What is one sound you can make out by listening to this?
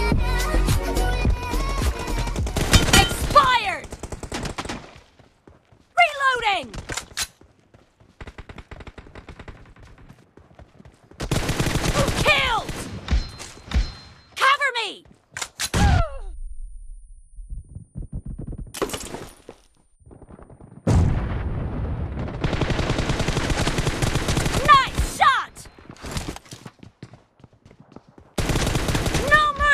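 Rifle gunfire crackles in rapid bursts.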